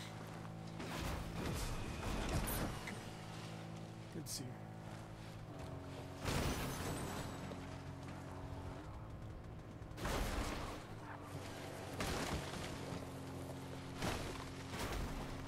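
A truck bumps and thuds over uneven terrain.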